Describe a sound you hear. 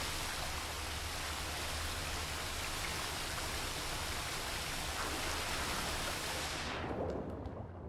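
Water rushes and bubbles in a steady, muffled roar.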